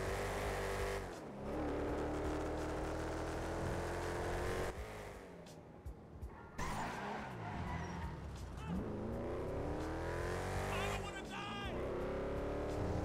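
A hot rod engine roars at full throttle, shifting up through the gears.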